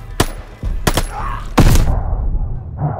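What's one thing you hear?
Gunshots fire in quick bursts close by.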